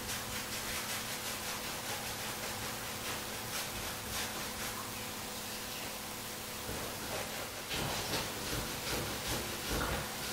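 A brush scrubs a wet metal part.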